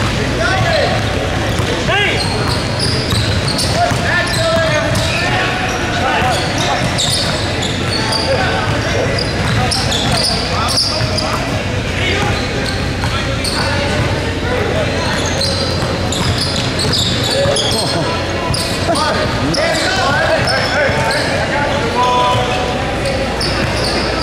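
Young men shout and call out across the court.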